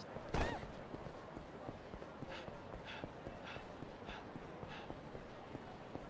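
Footsteps run quickly on pavement.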